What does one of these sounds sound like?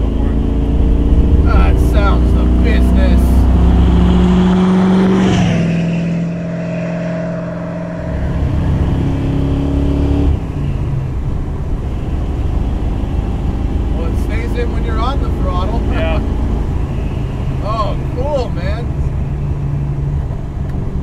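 A car engine rumbles and roars loudly.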